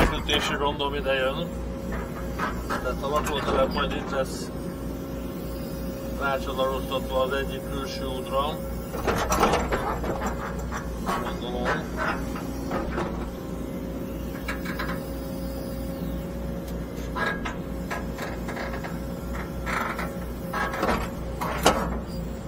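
A diesel engine rumbles steadily from inside a digger's cab.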